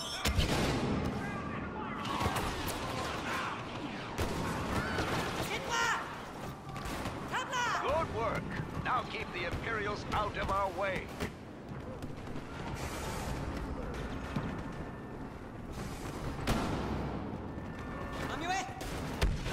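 Blaster shots fire in sharp bursts.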